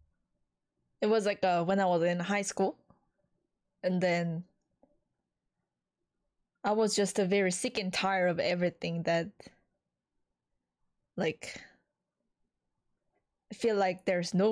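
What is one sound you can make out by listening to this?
A young woman talks with animation into a close microphone, in short bursts.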